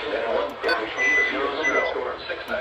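A handheld radio beeps briefly.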